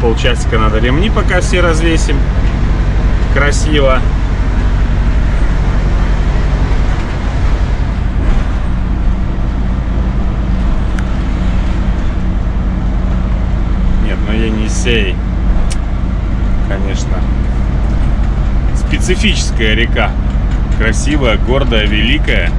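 A truck engine hums steadily at low pitch from inside the cab.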